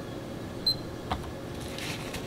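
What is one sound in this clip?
A plastic device knocks down on a hard surface.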